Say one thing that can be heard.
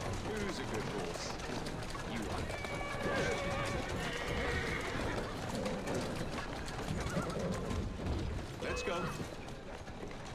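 Horses' hooves clatter on a street.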